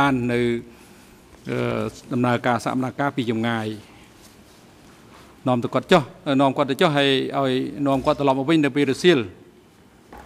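A middle-aged man speaks calmly and formally into a microphone.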